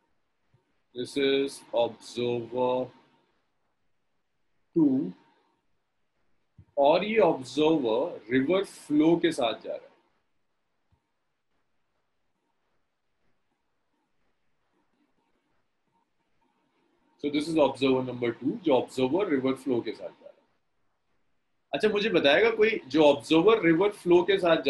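A young man talks calmly over an online call, with pauses.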